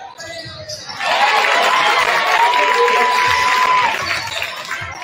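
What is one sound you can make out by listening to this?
A large crowd cheers loudly in an echoing gym.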